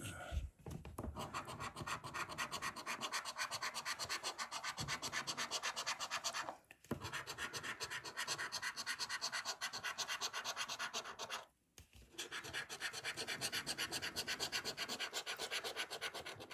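A coin scratches rapidly across a scratch card, close up.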